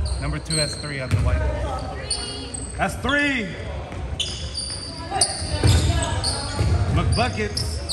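Sneakers squeak sharply on a hardwood floor in an echoing hall.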